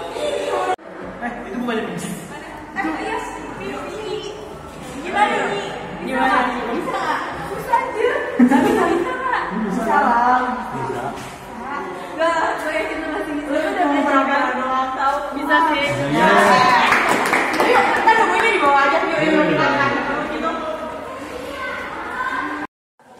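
Several young women chat with animation in an echoing hallway.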